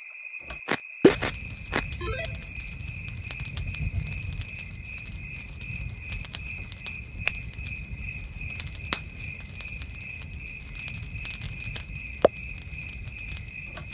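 A campfire crackles and hisses steadily.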